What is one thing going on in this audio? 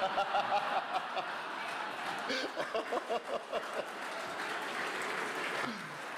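A younger man laughs heartily into a microphone.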